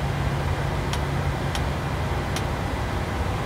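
Cockpit switches click a few times.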